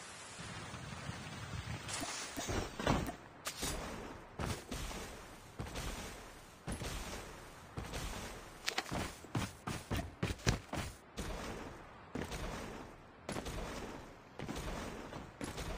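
Footsteps run quickly over grass and a road.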